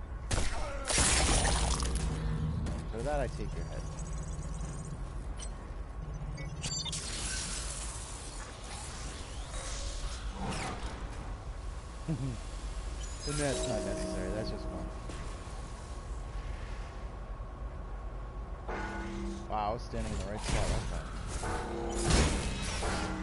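Heavy metal blows clang sharply.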